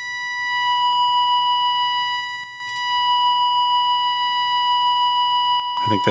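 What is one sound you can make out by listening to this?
A valve radio gives out a steady, high-pitched whistling tone.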